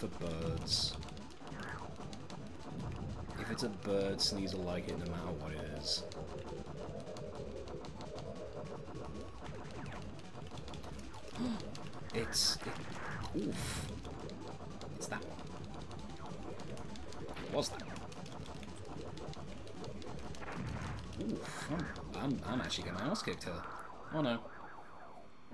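Explosions burst in a space video game.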